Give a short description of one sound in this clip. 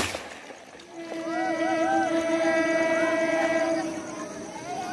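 A train horn blares loudly and steadily.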